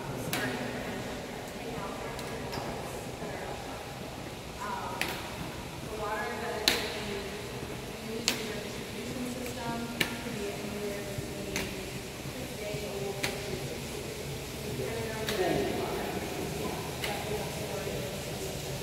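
Several adults talk at once, murmuring, in a large echoing hall.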